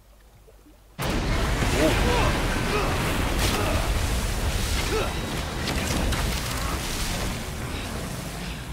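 Water crashes and sprays loudly as a huge creature bursts out of a lake.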